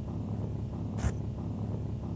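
A heavy stone block crashes down once.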